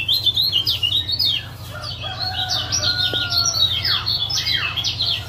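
A caged songbird sings rapid, chirping trills close by.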